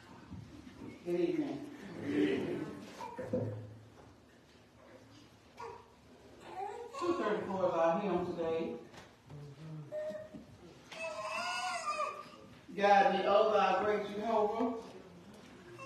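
Several adults in a seated congregation speak in bursts, close by in an echoing room.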